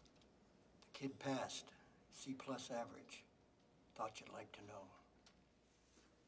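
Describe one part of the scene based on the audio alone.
A man speaks slowly and quietly from a film.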